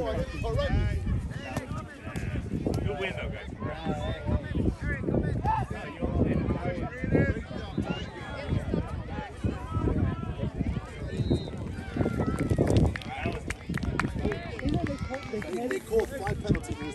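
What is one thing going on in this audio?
Young children shout and cheer excitedly outdoors.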